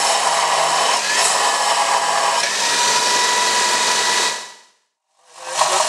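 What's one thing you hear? A bench grinder whirs with a steady high whine.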